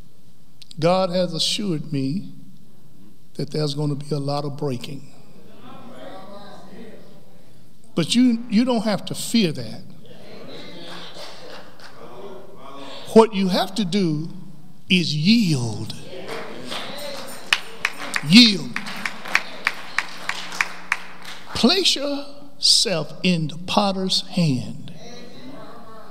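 A man preaches with animation into a microphone in an echoing hall.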